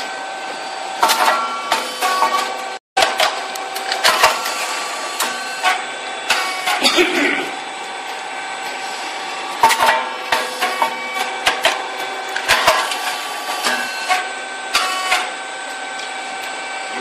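A rice cake popping machine hums.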